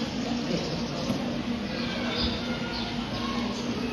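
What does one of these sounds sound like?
Cardboard rustles as items are taken from a box.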